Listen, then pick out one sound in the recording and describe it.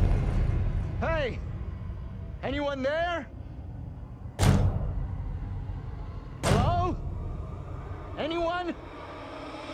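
A man calls out loudly and anxiously, his voice echoing.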